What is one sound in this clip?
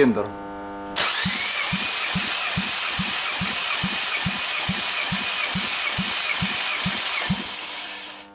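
An engine cranks over with a fast, rhythmic churning.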